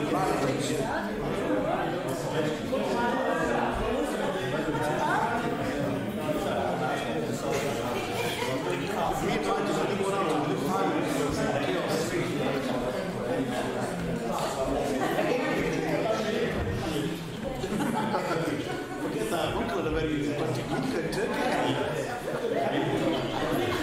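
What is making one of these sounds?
Many men and women chatter at once in a room.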